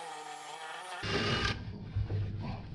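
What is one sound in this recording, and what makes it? A drill bit grinds roughly into tile.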